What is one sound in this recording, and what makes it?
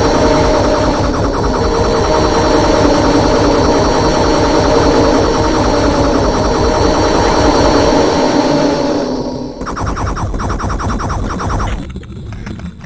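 A heavy gun fires in fast, rattling bursts.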